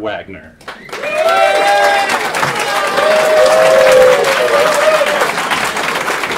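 A crowd cheers and whoops.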